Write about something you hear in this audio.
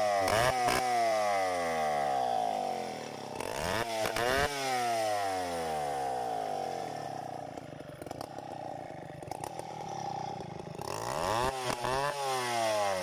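A large two-stroke chainsaw runs, revving up and down.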